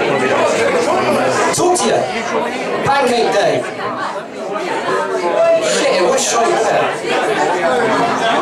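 A young man sings into a microphone through loudspeakers.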